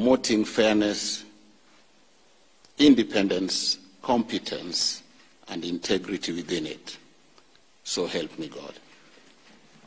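A man speaks solemnly into a microphone in short phrases.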